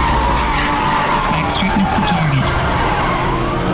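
Tyres squeal as a car drifts.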